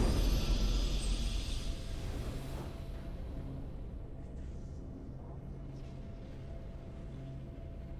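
Soft game music hums steadily.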